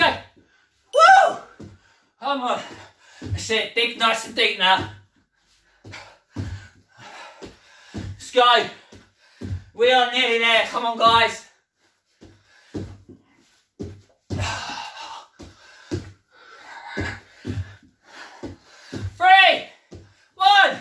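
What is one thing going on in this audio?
Bare feet thud on a wooden floor as a man jumps.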